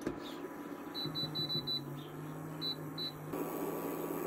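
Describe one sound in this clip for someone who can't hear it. An electric cooktop beeps as its buttons are pressed.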